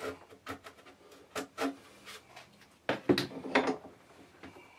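A tool scrapes and knocks against a hard plastic shell.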